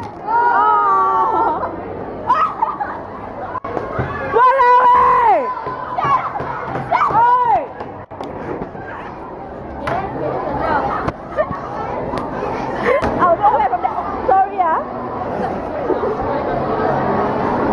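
Young girls shriek and laugh loudly nearby.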